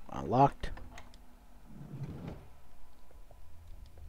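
A sliding door rattles open.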